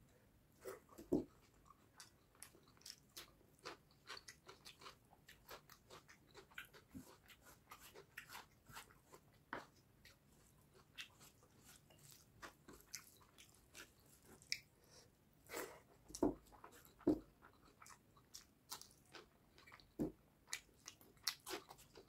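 A man chews food loudly and wetly, close up.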